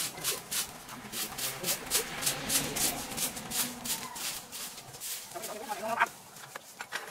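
A broom sweeps briskly across dry ground with rapid scratching strokes.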